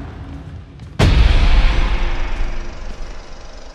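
Glass shatters with a loud, sudden crash that rings out and fades.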